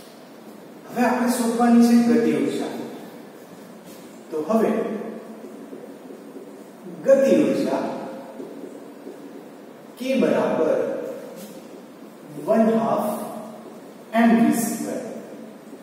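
A young man speaks calmly in short bursts.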